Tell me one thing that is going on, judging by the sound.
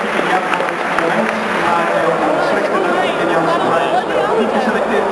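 A crowd chatters in a large stadium.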